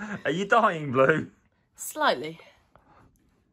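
A young person talks with animation close by.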